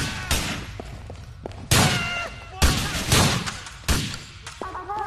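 Gunshots ring out loudly in quick bursts, echoing.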